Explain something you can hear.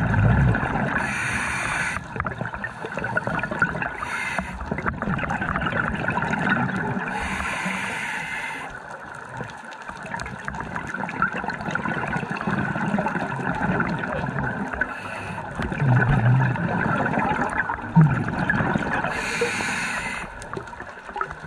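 Bubbles from a diver's breathing gurgle and rush upward in short bursts.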